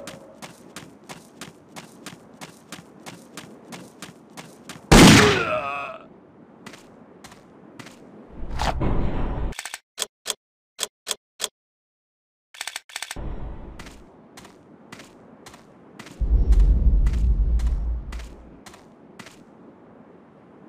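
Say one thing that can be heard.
Footsteps thud quickly and evenly on sand.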